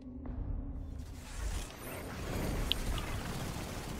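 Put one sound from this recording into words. An energy weapon fires with crackling blasts.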